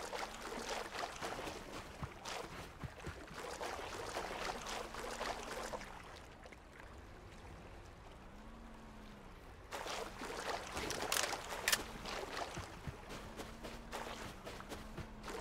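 Small waves lap gently against a shore.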